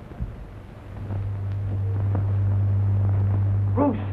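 A low, steady electric hum drones.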